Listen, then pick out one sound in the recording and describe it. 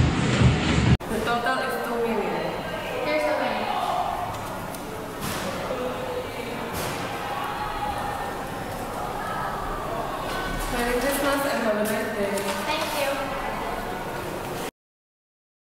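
A young girl speaks nearby.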